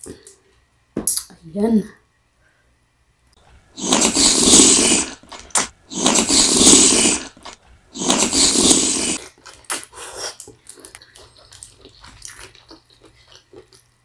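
A woman chews loudly and slurps food close to a microphone.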